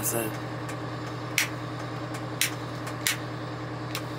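Switches click as they are flipped.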